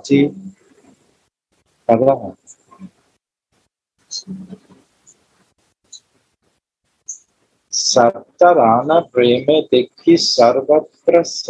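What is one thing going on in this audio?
A man speaks in short bursts with pauses.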